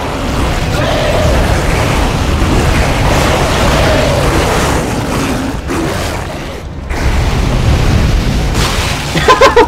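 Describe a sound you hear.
A flamethrower roars with a steady rushing blast.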